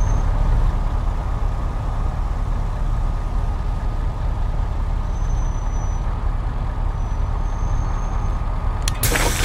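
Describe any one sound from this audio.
A bus engine rumbles steadily up close.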